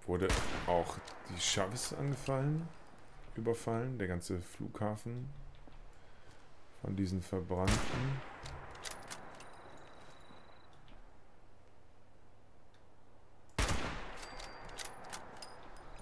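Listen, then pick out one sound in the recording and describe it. A shotgun's pump action racks with a metallic clack.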